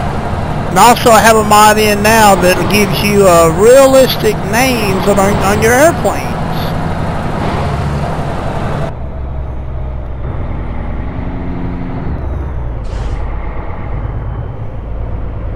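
A truck engine rumbles steadily at low revs.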